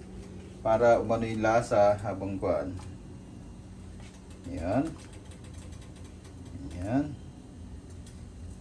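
Small pieces of food drop softly into a pot of water.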